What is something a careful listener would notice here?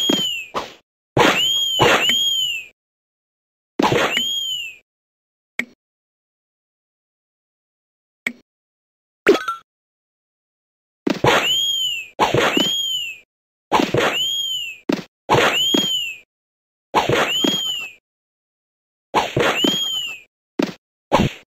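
A bright rising-and-falling chime rings out again and again in a video game.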